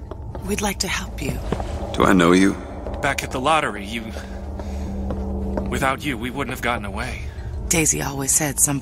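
A man speaks warmly and gratefully nearby.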